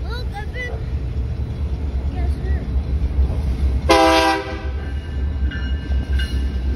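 A diesel locomotive engine rumbles low and steadily.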